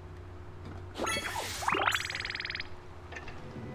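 A bright game chime rises quickly in pitch.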